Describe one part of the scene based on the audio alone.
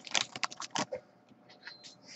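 Plastic wrappers crinkle and rustle in hands.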